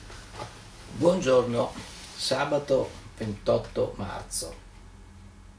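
An older man speaks calmly, close by.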